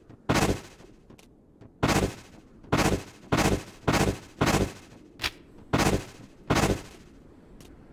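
Sharp whooshing sword swings swish again and again in quick bursts.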